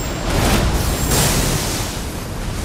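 Lightning crackles and booms.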